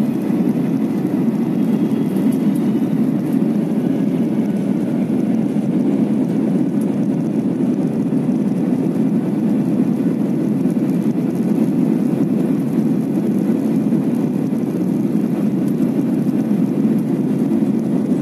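Jet engines roar steadily, heard from inside an airliner cabin.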